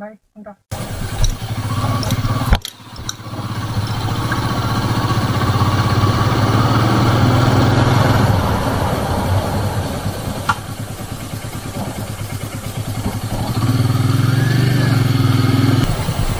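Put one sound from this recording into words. A motorcycle engine hums steadily, rising and falling with speed.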